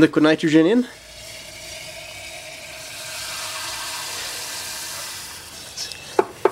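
A can of spray hisses steadily.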